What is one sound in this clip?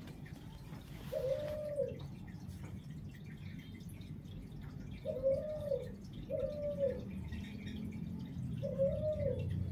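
Cloth rustles as a hand brushes against it.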